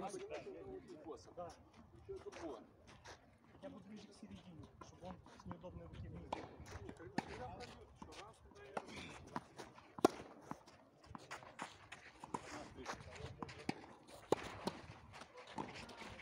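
Tennis balls are struck with rackets, popping sharply back and forth.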